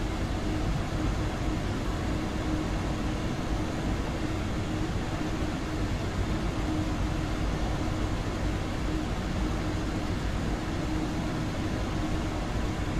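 A low hum drones steadily inside a train carriage.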